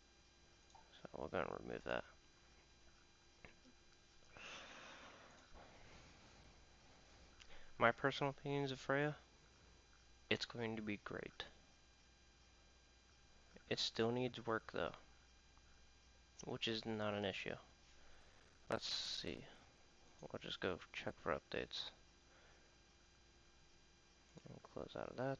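A man talks calmly into a nearby microphone, in short bursts with pauses.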